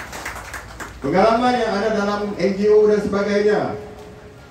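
An elderly man sings out long held notes through a microphone.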